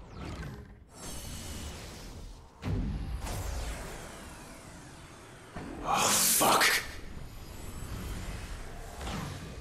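Crackling magic energy whooshes and hisses.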